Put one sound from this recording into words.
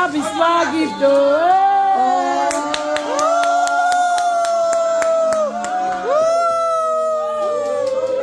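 A group of women sings together loudly.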